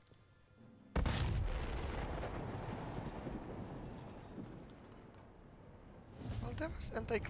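A huge explosion booms and slowly rumbles away.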